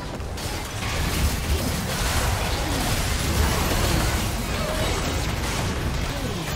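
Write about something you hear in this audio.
Fantasy battle sound effects crackle, clash and burst in quick succession.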